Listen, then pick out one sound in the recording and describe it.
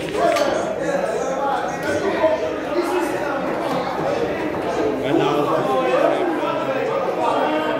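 Several men talk and call out loudly in an echoing room.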